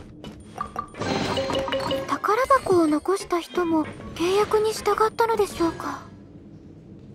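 A treasure chest opens with a bright, tinkling musical chime.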